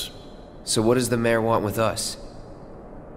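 A young man asks a question in a calm voice.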